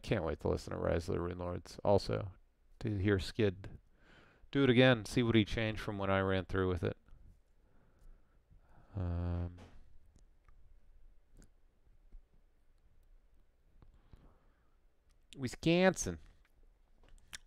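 A man speaks calmly and thoughtfully into a close microphone, with pauses.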